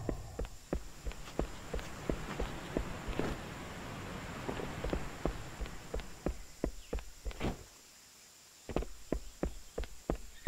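Footsteps tap steadily on a hard surface.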